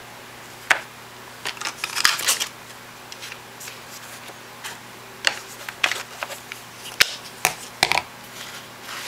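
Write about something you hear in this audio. A rubber stamp taps onto a stamp pad.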